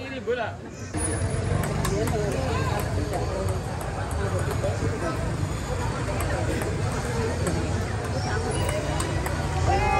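A crowd chatters steadily in the background.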